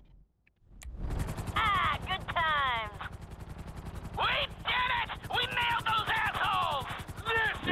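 A helicopter's rotor chops steadily overhead.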